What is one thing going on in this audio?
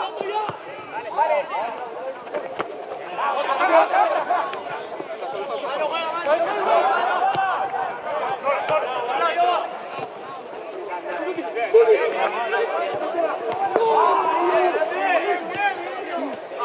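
Young men shout to one another outdoors, some way off.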